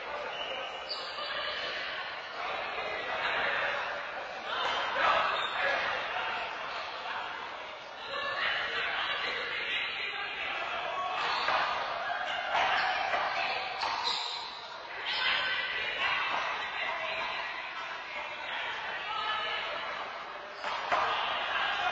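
A ball smacks hard against walls in an echoing court.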